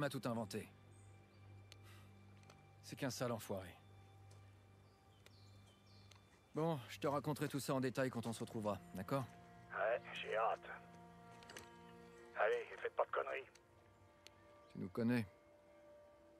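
A man speaks calmly into a walkie-talkie.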